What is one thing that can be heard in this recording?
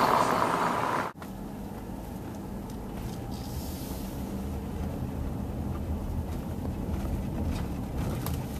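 A car drives along a street.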